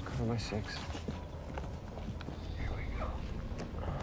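Leaves rustle as a man crawls through undergrowth.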